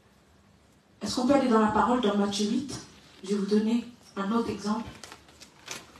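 A young woman speaks into a microphone in a reverberant room, with pauses.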